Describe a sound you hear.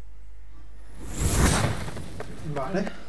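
A magical whoosh rushes in as a beam of light flares.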